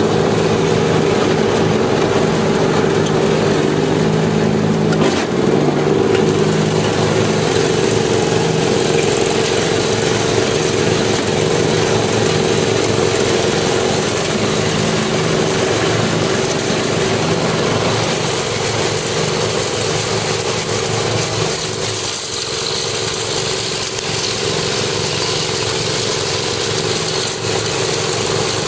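Mower blades whir and chop through dry grass.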